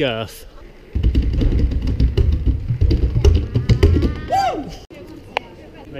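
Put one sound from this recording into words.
A man beats hand drums with loud, booming thumps.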